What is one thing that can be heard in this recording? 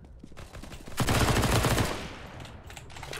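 A gun fires a rapid burst of shots.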